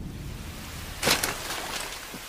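A sword clatters onto hard ground.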